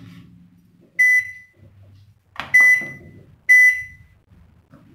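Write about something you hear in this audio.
Microwave buttons beep as they are pressed.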